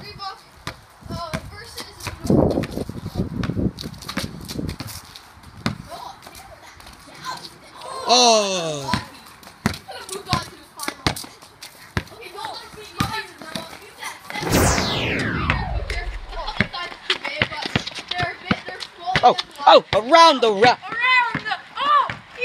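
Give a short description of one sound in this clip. A rubber ball bounces repeatedly on concrete.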